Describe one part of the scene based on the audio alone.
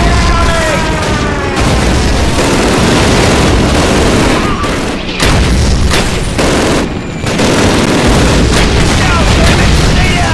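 A rifle fires single shots close by.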